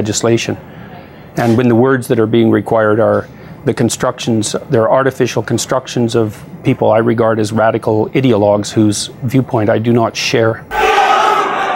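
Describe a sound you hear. A man speaks calmly over a broadcast link.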